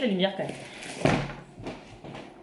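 A cardboard box thumps as it is set down.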